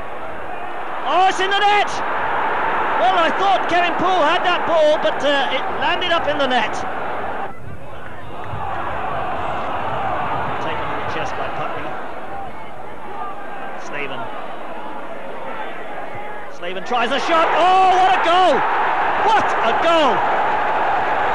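A stadium crowd bursts into loud cheers and shouts.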